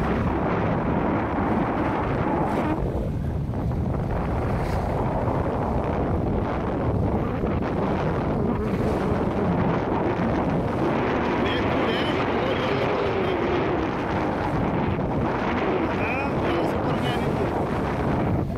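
Waves splash and rush against a ship's bow.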